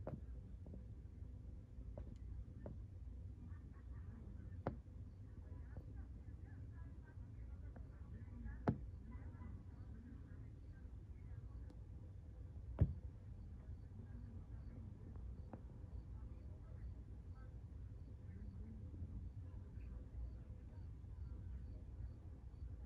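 Men and women talk quietly at a distance outdoors.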